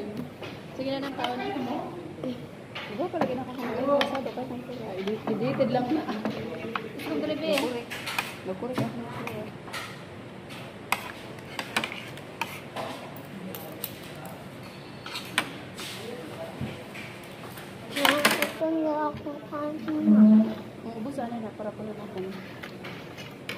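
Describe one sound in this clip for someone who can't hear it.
Metal cutlery clinks and scrapes on plates.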